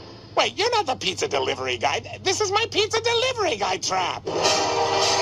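A cartoon man speaks in a nasal, animated voice.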